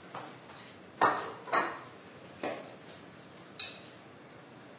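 Metal pots clatter on a stove.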